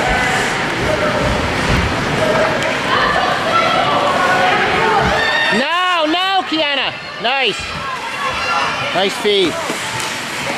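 A crowd of spectators chatters and calls out in a large echoing arena.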